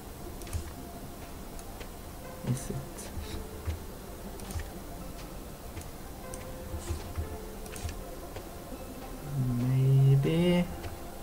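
Footsteps crunch softly on the ground at a steady walking pace.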